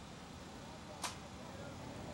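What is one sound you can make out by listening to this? A football is kicked with a dull thud on grass.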